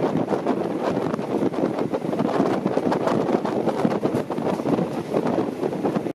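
A train rumbles and rattles steadily along the tracks.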